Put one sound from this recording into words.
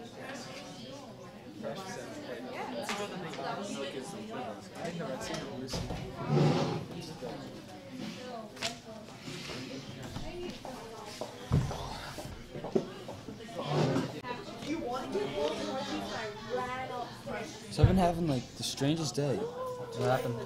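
Young men talk and chatter nearby in a room.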